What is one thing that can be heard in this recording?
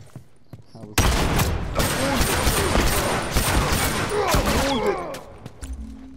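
Gunfire rattles loudly in rapid bursts.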